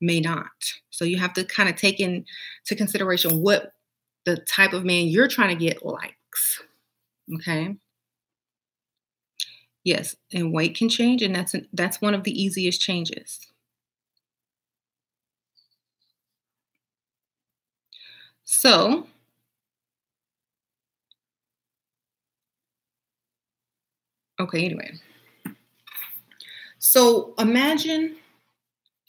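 A woman speaks close to a microphone with animation, pausing now and then.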